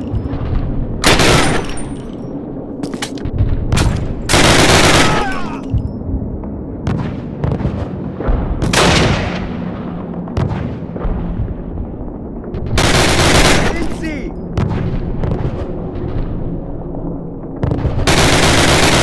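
Gunshots ring out in loud bursts with a rumbling echo.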